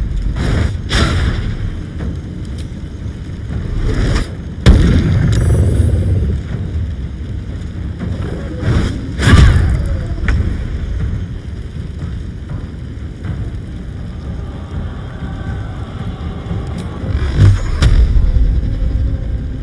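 Spells blast and boom with heavy impacts.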